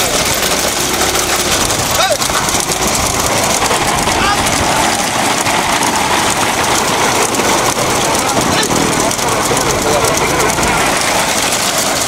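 Hooves clatter on a paved road as bulls pull a cart at a run.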